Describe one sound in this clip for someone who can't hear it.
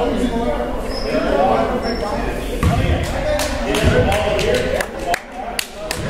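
Young voices shout and call out across a large echoing gym.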